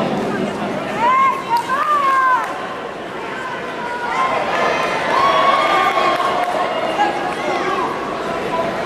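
Spectators shout out loudly.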